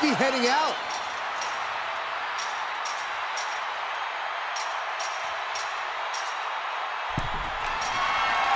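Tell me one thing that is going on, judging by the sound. A large arena crowd roars and cheers steadily.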